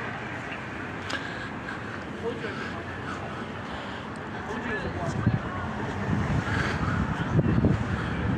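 Traffic rumbles steadily along a city street.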